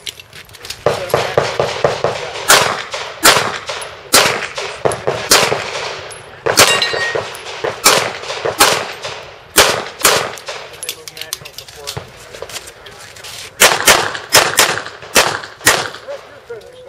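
Pistol shots ring out in quick bursts outdoors, with sharp echoes.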